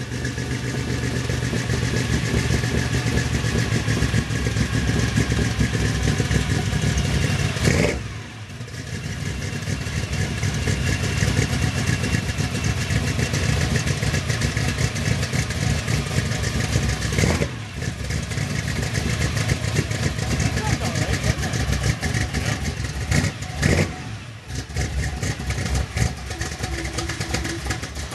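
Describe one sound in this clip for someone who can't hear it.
An old truck engine idles with a deep, rough rumble outdoors.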